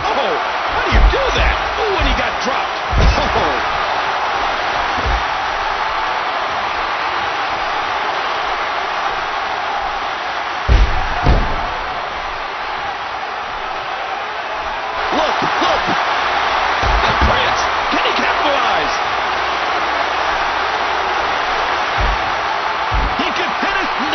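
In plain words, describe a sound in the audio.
Heavy bodies thud onto a wrestling ring mat.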